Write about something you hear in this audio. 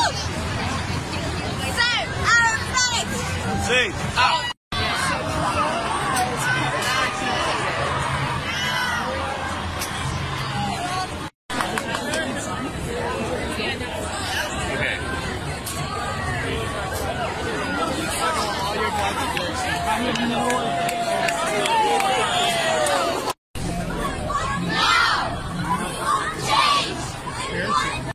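A large crowd of young people chatters and shouts outdoors.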